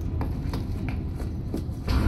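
Footsteps run on a metal floor.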